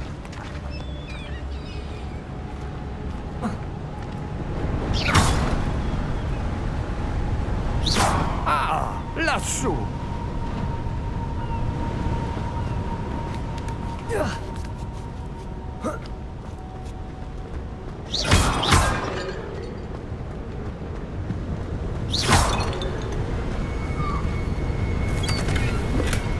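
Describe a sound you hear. Footsteps run across stone paving.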